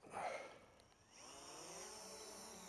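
A small drone's motors start and whir steadily.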